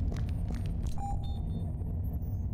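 A keypad beeps electronically.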